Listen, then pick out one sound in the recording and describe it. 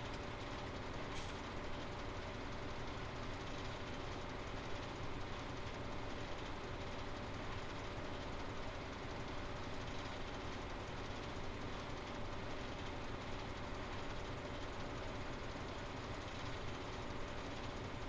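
A harvester engine drones steadily.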